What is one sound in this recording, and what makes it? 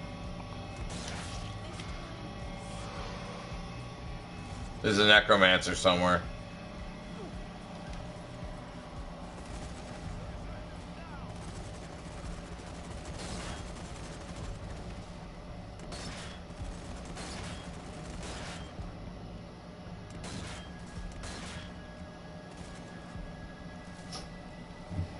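Rifle shots crack now and then.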